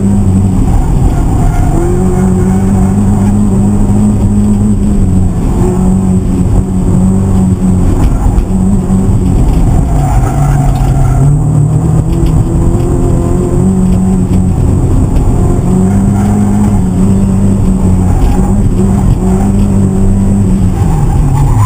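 A car engine roars loudly from inside the cabin, revving up and down.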